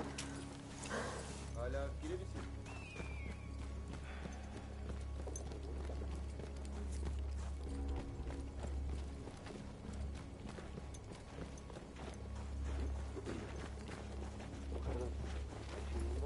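Footsteps crunch on sand and dirt.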